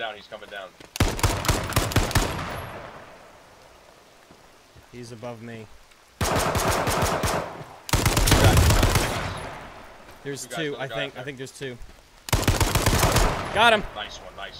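A rifle fires loud rapid bursts.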